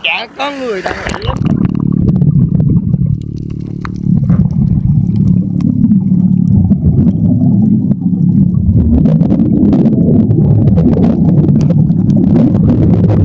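Water rumbles and churns, heard from under the surface.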